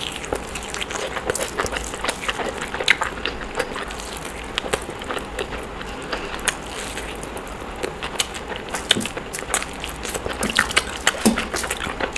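Chicken meat tears apart in fingers.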